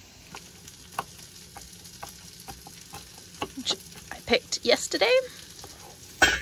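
A knife chops herbs on a wooden board with quick taps.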